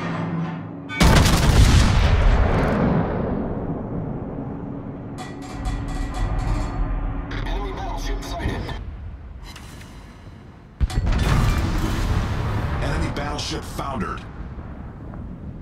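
Heavy naval guns fire with deep, rolling booms.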